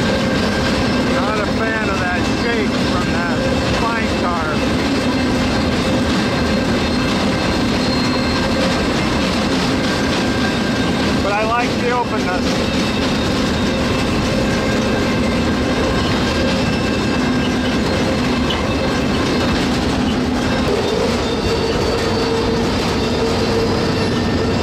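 A freight train rumbles and clatters steadily along the tracks.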